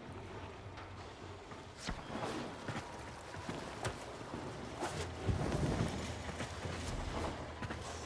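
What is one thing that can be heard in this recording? Footsteps thud and land with soft knocks.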